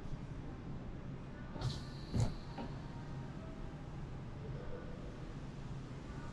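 A car's folding roof whirs open with a steady motor hum.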